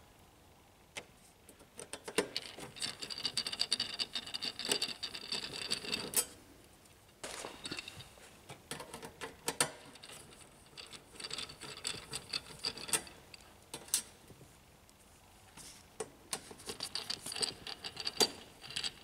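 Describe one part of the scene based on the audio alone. A screwdriver scrapes and clicks as screws are turned in a metal casing.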